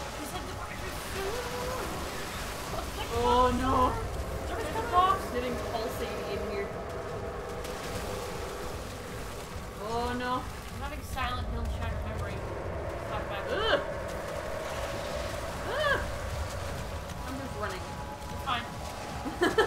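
Young women talk and exclaim excitedly close by.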